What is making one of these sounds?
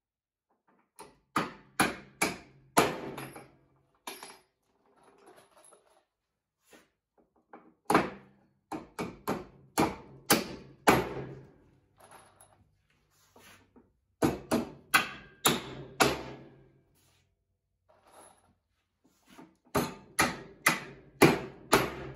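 A hammer strikes metal in bursts of sharp, ringing blows.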